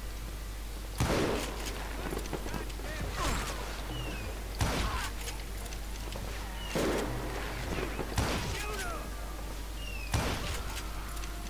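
Gunshots ring out, each with an echo.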